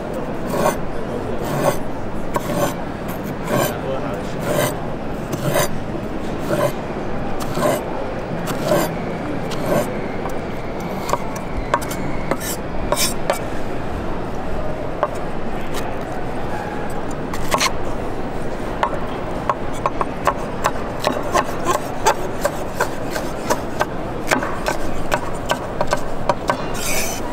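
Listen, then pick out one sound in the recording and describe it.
A knife chops rhythmically on a wooden board.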